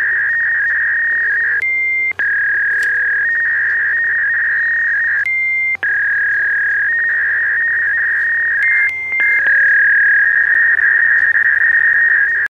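A fax machine emits a loud, steady high-pitched screech that briefly breaks off and resumes.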